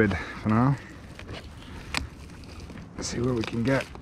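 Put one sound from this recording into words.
A plastic wrapper crinkles in a man's hands.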